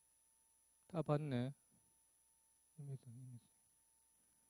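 A man mutters quietly.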